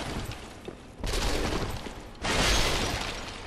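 A heavy blow lands with a loud burst of noise.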